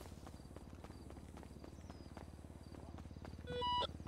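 Footsteps run on concrete.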